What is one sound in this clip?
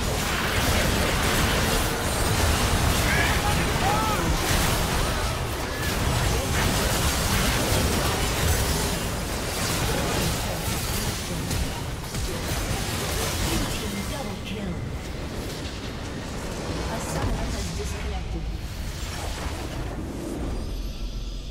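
Game spell effects and battle sounds clash and burst rapidly.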